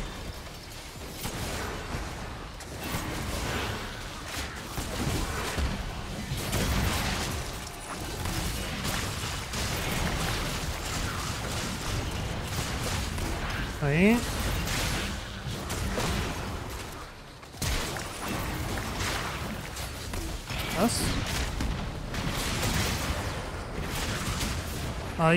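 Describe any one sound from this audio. Magic spells whoosh, crackle and burst in a rapid game battle.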